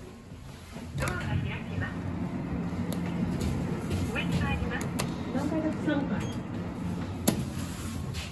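Elevator buttons click as they are pressed.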